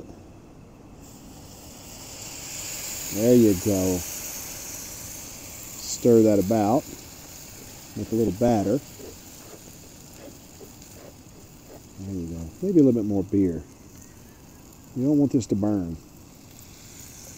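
Liquid sizzles and hisses in a hot pot.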